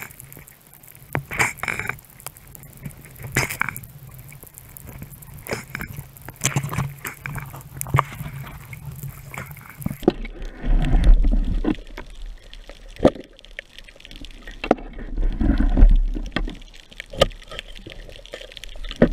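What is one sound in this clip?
A diver breathes loudly through an underwater regulator.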